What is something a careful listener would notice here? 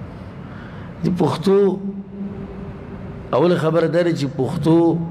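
A man recites in a slow, drawn-out chant close to a microphone.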